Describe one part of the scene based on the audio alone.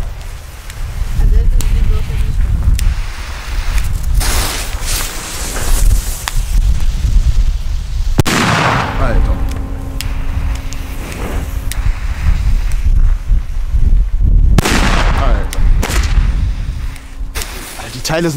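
A firework hisses and fizzes loudly on the ground.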